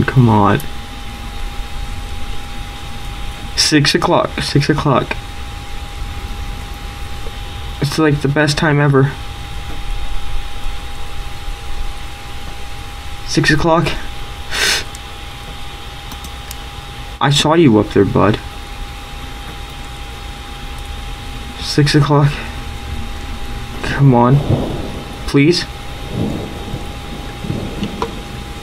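A young man talks in short bursts into a headset microphone, close up.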